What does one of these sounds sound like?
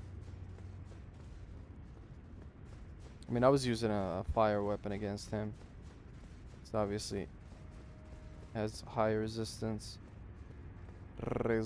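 Footsteps scuff on stone.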